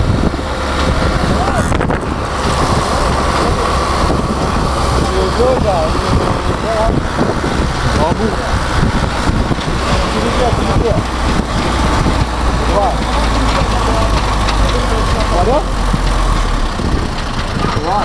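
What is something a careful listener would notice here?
Several men talk loudly nearby.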